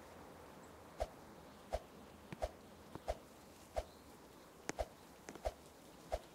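Footsteps thud at an even pace.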